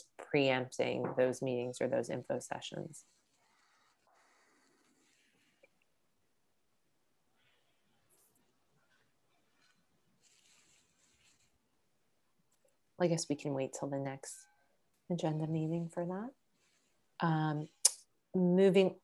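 A woman speaks calmly over an online call, pausing now and then.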